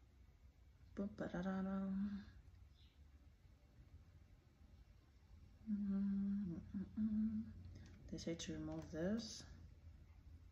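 A young woman speaks calmly and slowly into a microphone, close by.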